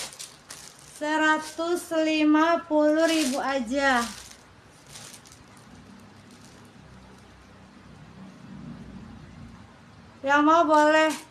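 A young woman sings in a high voice close by.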